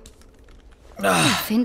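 A man grunts loudly with strain, close by.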